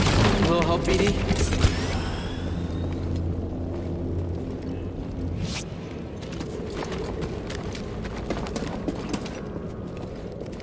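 Footsteps scuff on stone and wooden boards.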